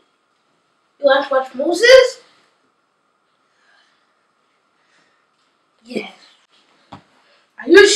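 A young boy speaks loudly and with animation close by.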